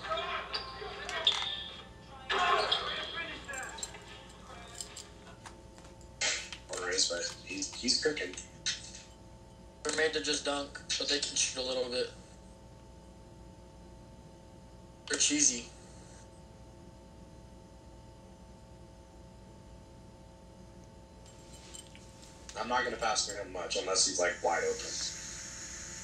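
Sounds of a basketball game play in bursts from a television speaker.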